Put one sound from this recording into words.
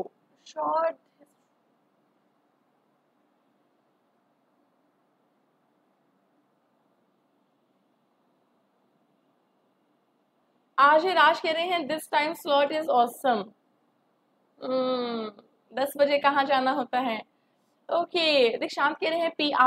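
A young woman speaks with animation into a microphone, heard close.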